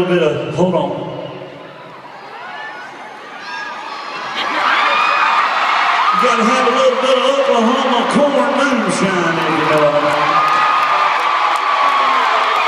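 A large crowd cheers and sings along.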